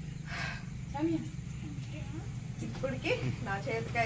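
A girl speaks briefly with animation.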